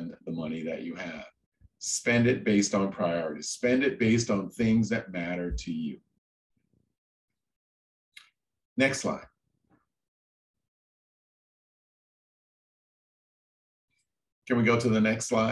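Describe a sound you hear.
A man speaks calmly through a microphone, as if on an online call, with long pauses.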